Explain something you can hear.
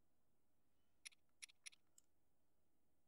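Soft menu ticks sound as a selection moves.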